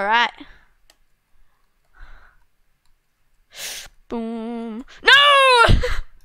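A young girl speaks with animation into a headset microphone, with loud high-pitched exclamations.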